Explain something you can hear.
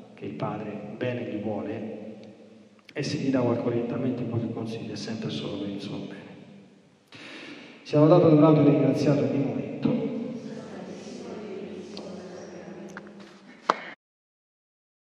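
A group of people recite a prayer together in an echoing space.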